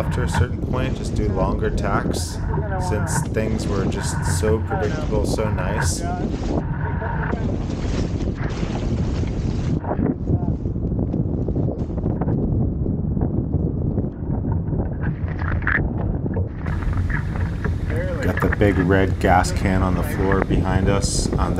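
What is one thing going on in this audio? Waves splash and rush against a small boat's hull.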